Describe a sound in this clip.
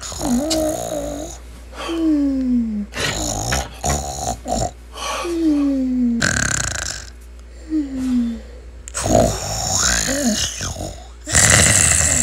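A young woman groans in frustration close by.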